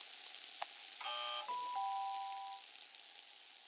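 A bright game chime rings.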